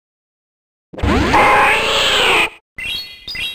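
A game creature lets out a short, harsh cry.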